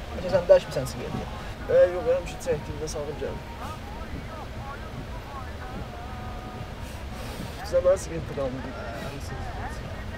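A second young man answers quietly up close.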